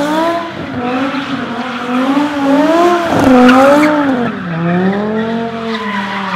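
Tyres screech as they spin on pavement.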